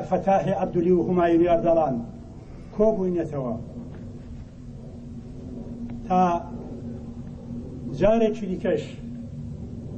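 A crowd of men chants slogans loudly outdoors, in short bursts.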